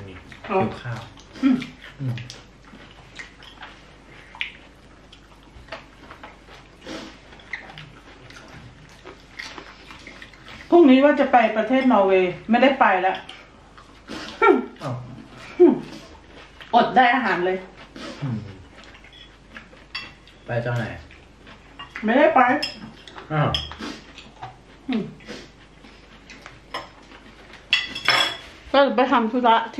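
A middle-aged man chews and smacks his lips loudly.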